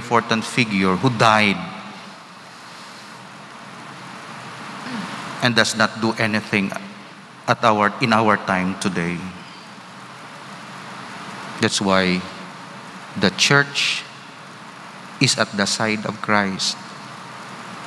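A man speaks calmly into a microphone, with pauses, in a large echoing hall.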